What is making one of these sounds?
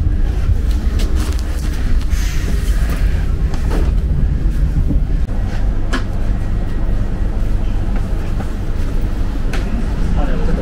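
Train wheels clack now and then over rail joints.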